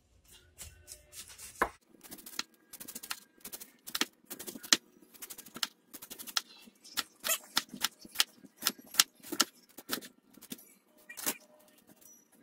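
A knife chops cabbage against a wooden board in quick strokes.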